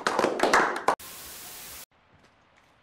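A static hiss sounds briefly.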